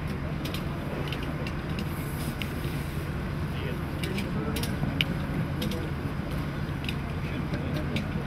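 Metal rescue tools clink and knock now and then.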